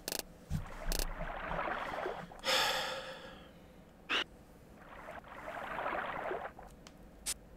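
A fishing reel whirs as line winds in.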